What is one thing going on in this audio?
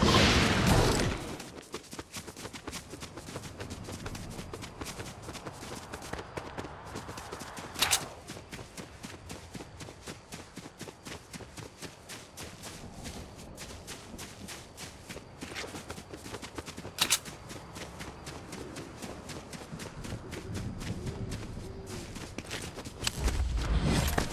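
Rapid footsteps run over grass.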